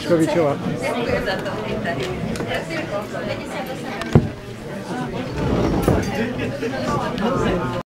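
A crowd of people chatter at once in an echoing hall.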